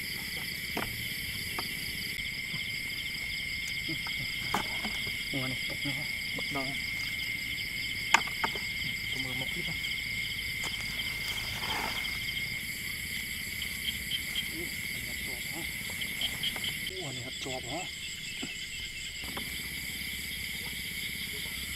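Bare feet walk over grass.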